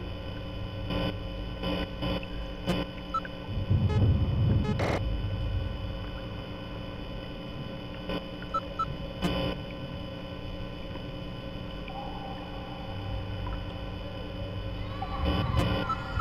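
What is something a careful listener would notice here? Electronic static hisses and crackles steadily.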